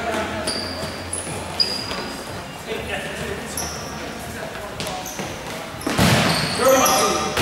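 A ball thumps off a foot.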